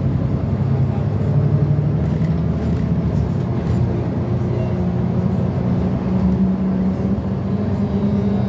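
A vehicle's engine hums low and steady from inside as it drives along a road.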